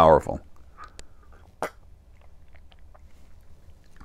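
An older man sips a drink from a mug.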